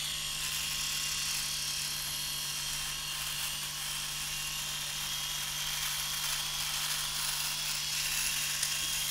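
An electric shaver buzzes steadily close by, trimming stubble.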